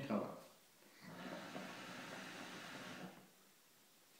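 Water bubbles in a hookah as a young man draws on it.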